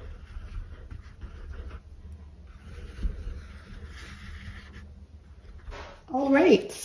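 A stiff brush scrubs and dabs softly on canvas.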